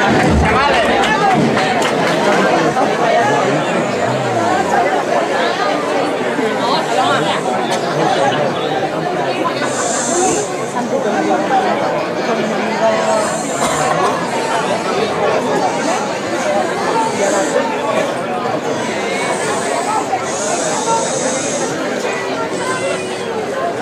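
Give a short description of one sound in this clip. A crowd of people chatters and murmurs close by, outdoors.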